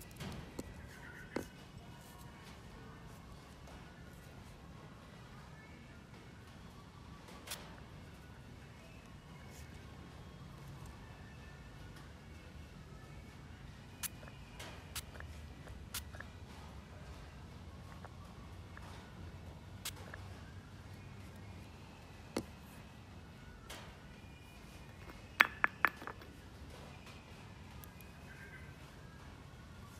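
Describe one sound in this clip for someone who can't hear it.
A puppy laps and chews food from a bowl.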